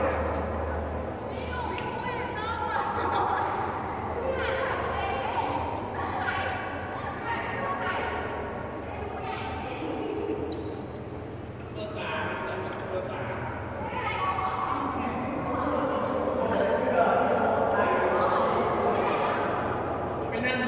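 Young men and women talk and call out in a large echoing hall.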